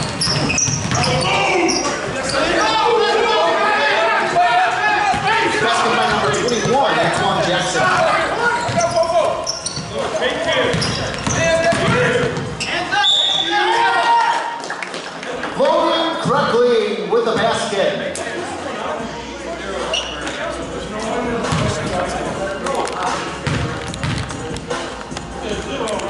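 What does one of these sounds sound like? Young men shout and call out to one another across an echoing gym.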